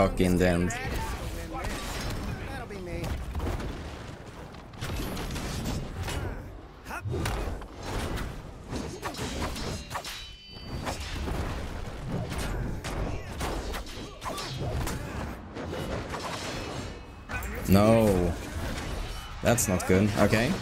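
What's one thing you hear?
Punches, thuds and whooshing blows sound in a lively fight.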